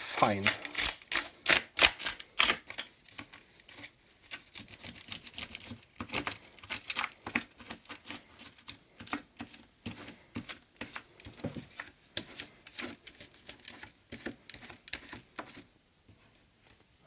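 A cloth rubs over a plastic plate, with small parts clicking and rattling.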